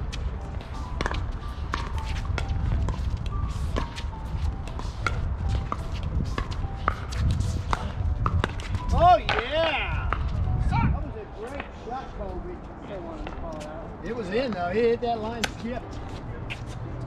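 Paddles pop against a plastic ball in a quick rally.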